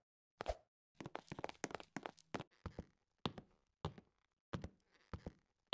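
Quick, clattering steps climb a ladder.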